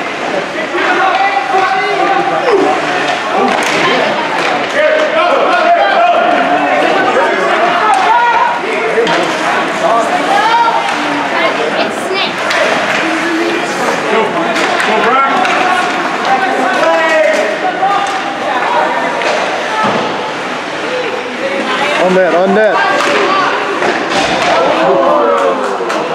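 Spectators nearby chatter and call out throughout.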